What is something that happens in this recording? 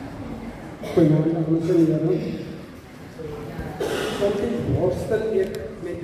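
A second man speaks loudly through a microphone and loudspeakers.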